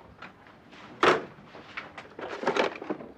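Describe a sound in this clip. A box of toy figures is set down on a desk with a knock.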